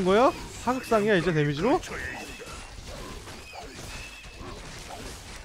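Game characters fight with clashing weapons and spell effects.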